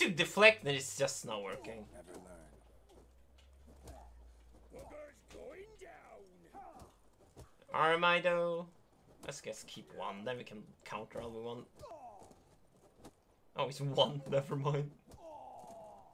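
Men shout and grunt as they brawl with fists.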